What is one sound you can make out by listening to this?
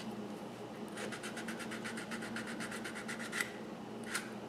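A small block rubs back and forth on sandpaper in quick rasping strokes.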